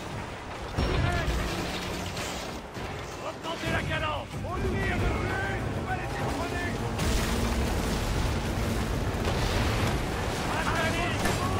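Waves crash and the sea rushes past a ship.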